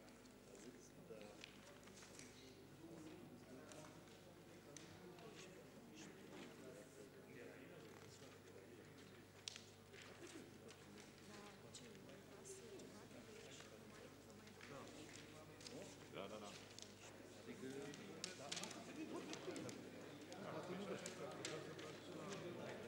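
Several men and women chatter at a distance in a large echoing hall.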